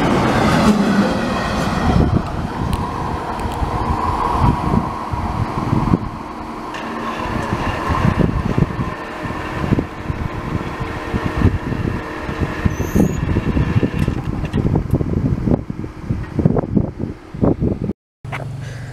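A long freight train rumbles and clatters away along the tracks.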